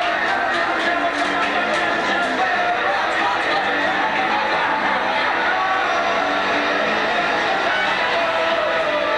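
A loud band plays distorted electric guitars in an echoing room.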